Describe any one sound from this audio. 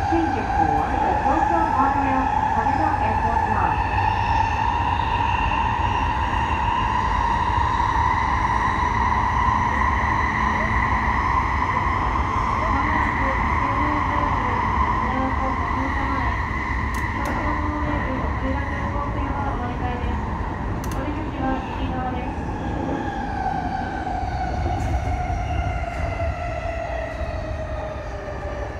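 A subway train rumbles through a tunnel.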